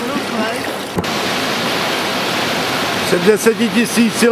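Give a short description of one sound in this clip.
Surf washes onto a beach.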